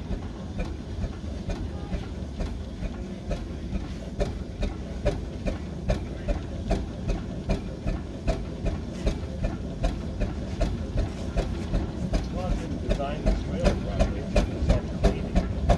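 Steam hisses from an engine.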